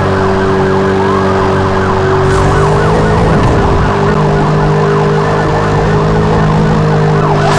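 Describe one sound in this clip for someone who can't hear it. Police sirens wail nearby.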